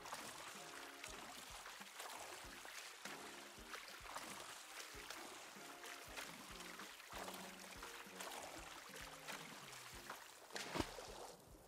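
Water splashes in quick, regular strokes as a game character swims.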